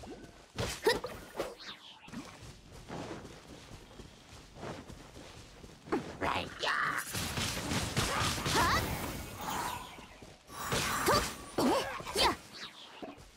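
Sharp magical slashes and bursts crackle in quick succession.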